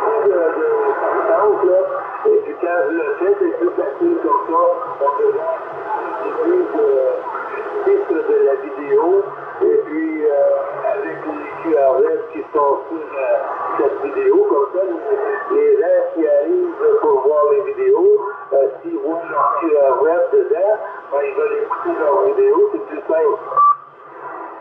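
A man talks over a radio loudspeaker, sounding thin and narrow.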